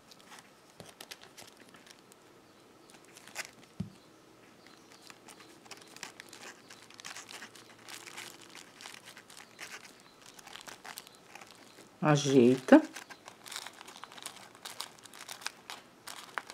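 Soft crocheted fabric rustles and scrapes against a plastic bottle.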